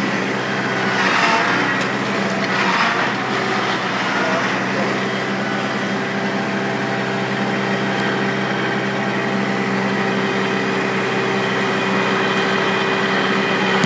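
A hydraulic arm whines as it lifts a log.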